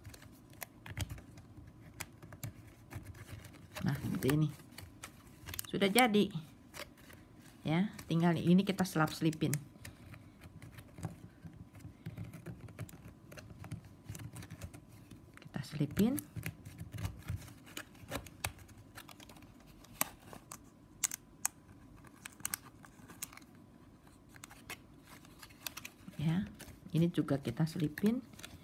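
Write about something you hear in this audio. Plastic strips rustle and crinkle as hands weave them.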